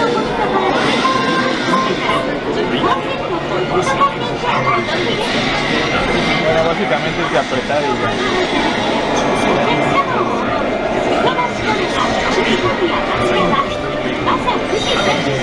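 Sword slashes and clashing battle noises play loudly through a loudspeaker.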